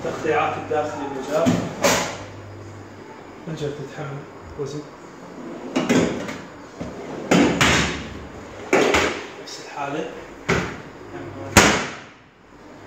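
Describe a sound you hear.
Wooden drawers slide open and shut with knocks.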